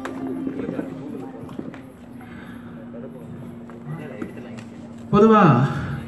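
A man speaks through a microphone over loudspeakers outdoors.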